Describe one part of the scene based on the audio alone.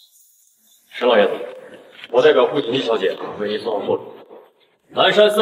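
A man speaks formally and calmly.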